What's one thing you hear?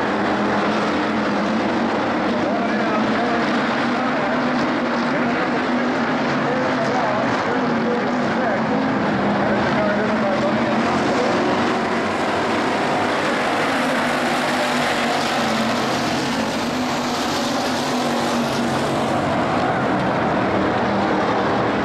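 Race car engines roar loudly as the cars speed around a dirt track.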